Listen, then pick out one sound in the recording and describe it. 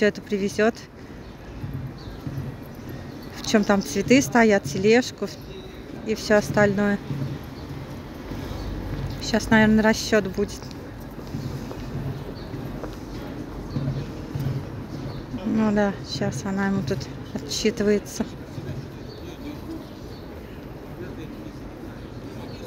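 Footsteps of passersby tap on pavement.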